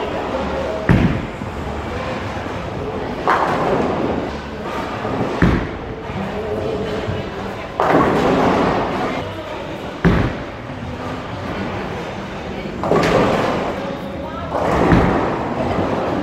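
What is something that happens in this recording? A bowling ball rolls down a lane with a low rumble.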